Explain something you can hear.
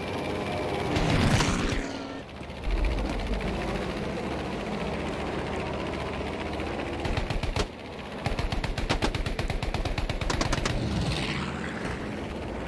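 An aircraft roars past close by with a falling whoosh.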